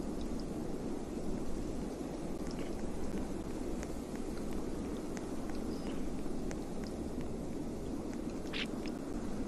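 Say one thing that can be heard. Wind blows steadily and roars.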